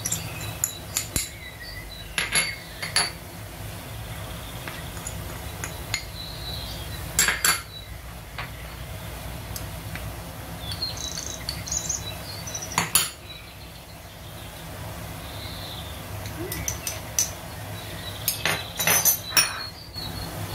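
A metal spoon taps against the rim of a steel pot.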